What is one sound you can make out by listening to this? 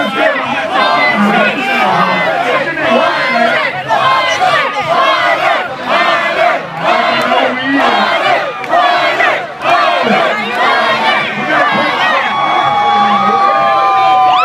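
A crowd cheers and shouts along.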